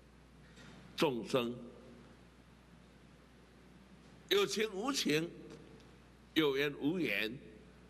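An elderly man speaks slowly and emphatically into a microphone, with long pauses.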